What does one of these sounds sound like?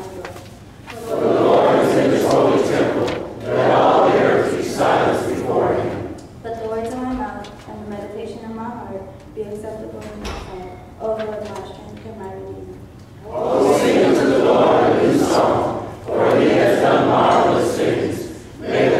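A congregation answers loudly together in response.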